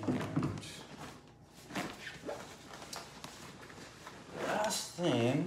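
A fabric bag rustles as it is handled.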